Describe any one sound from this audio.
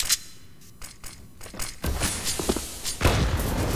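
Footsteps clatter quickly on a metal floor.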